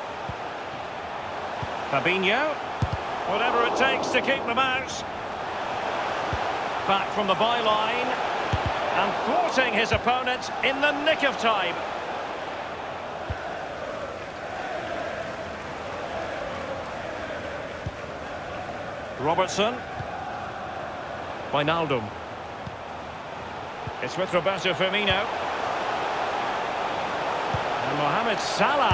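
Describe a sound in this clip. A stadium crowd roars and chants steadily.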